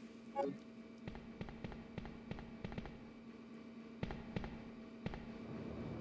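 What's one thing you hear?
Footsteps clack on hard stairs.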